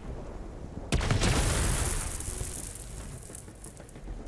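An electric blast crackles and bursts loudly, then fades.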